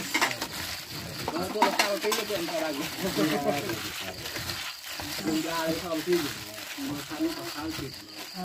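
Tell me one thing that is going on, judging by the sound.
A plastic bag crinkles as a hand kneads.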